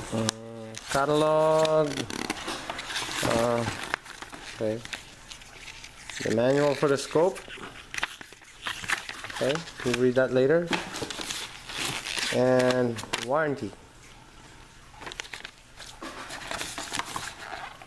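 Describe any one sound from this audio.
Foam packing squeaks and rubs as it is handled.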